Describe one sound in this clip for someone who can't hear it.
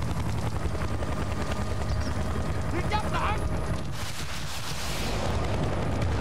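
Helicopter rotor blades thump steadily and loudly.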